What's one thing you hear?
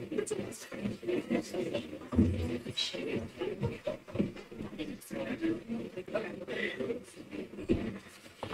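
A crowd of young people and adults chatters at once in a room.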